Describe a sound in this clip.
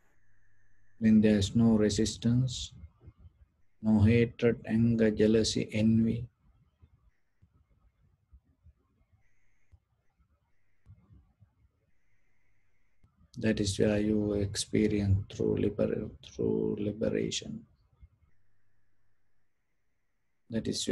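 A man speaks calmly and slowly into a close microphone, with long pauses.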